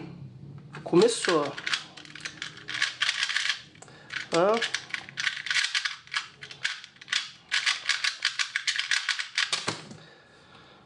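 A puzzle cube clicks rapidly as hands turn its sides.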